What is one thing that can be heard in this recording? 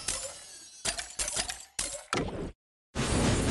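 Bright chiming game sound effects ring out in quick bursts.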